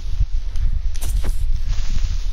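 A dull punch thuds against a creature.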